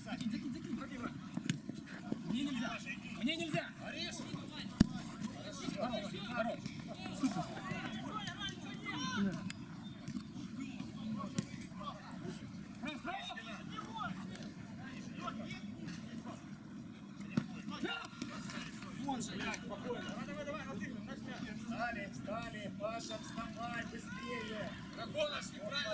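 Young men shout and call to each other across an outdoor pitch.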